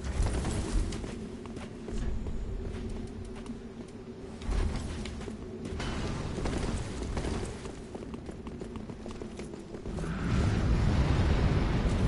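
Menu clicks tick softly and repeatedly.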